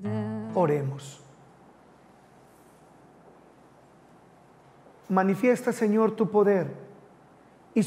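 A man chants and speaks solemnly into a microphone.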